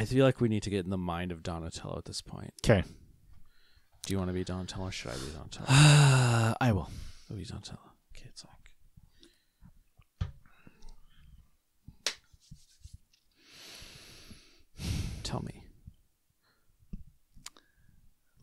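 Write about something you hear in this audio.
A second man talks and laughs into a close microphone.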